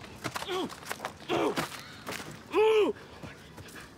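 A boy cries out and sobs in distress.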